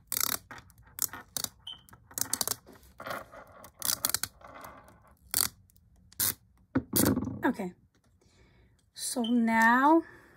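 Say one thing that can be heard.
Plastic film crinkles and rustles under fingers.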